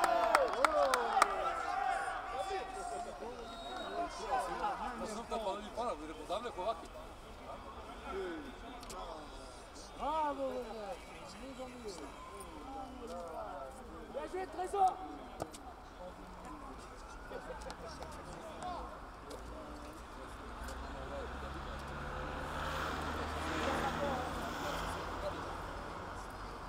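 Young men shout and call to each other across an open outdoor pitch.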